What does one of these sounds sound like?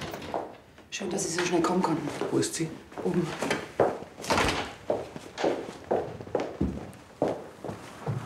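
Footsteps walk across a hard floor.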